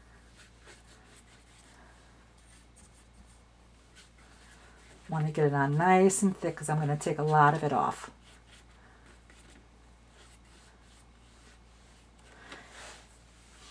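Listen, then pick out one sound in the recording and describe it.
A paintbrush swishes softly across wet paper.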